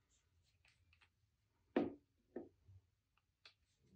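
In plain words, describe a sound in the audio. A paint tube squeezes out paint with a soft squelch.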